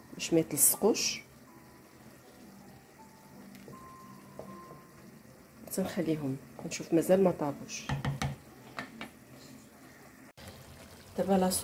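A wooden spoon stirs and scrapes inside a metal pot.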